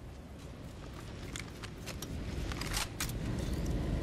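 A gun clicks and rattles as it is handled.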